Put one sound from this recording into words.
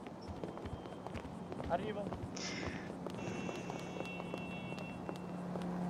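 Footsteps tap on paving at a walking pace.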